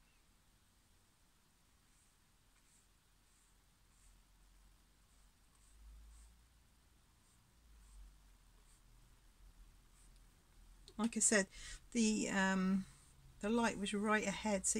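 A paintbrush strokes softly across a canvas.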